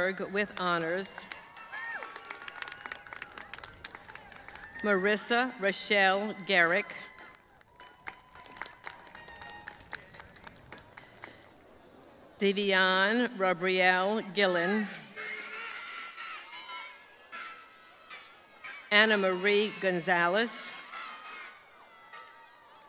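A crowd cheers and whoops from the stands.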